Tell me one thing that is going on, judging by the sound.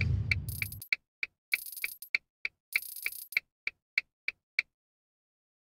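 Game chimes ring quickly one after another as a score counts up.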